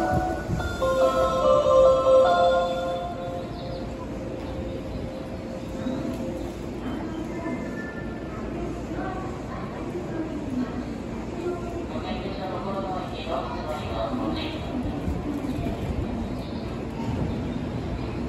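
A stopped train hums and rumbles steadily.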